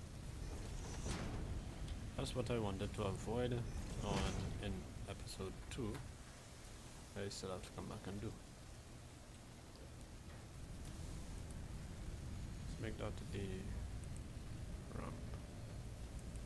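A young man talks calmly into a headset microphone, heard close.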